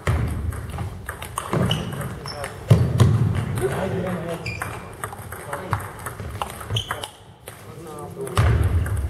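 Table tennis balls click off paddles and bounce on tables in a large echoing hall.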